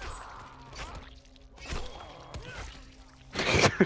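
A blunt weapon thuds heavily against a body.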